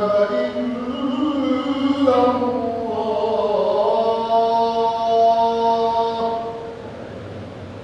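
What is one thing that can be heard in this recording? A man chants in a loud, drawn-out voice through a microphone.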